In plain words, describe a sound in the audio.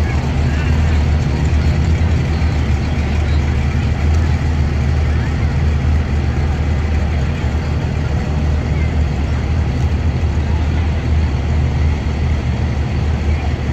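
A classic car engine rumbles as it rolls slowly past.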